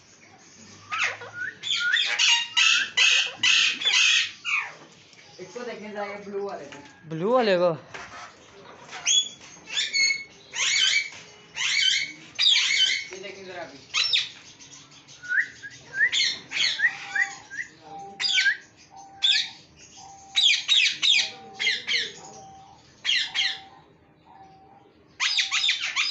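Parrots screech and squawk loudly close by.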